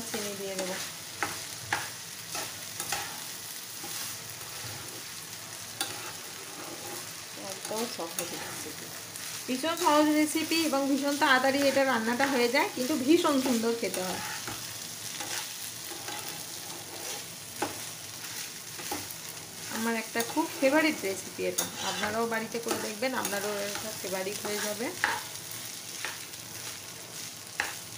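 Rice sizzles in a hot pan.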